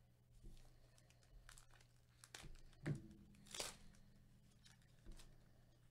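A plastic wrapper crinkles and rustles.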